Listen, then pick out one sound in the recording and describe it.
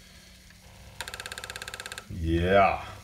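A floppy disk drive buzzes and clicks as it reads.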